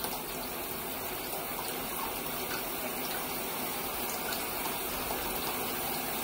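Wet fur squelches under a hand scrubbing a dog.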